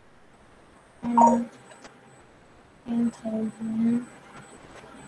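A young boy answers briefly over an online call.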